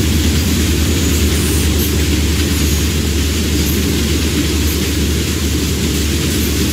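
A freight train rumbles steadily past at close range.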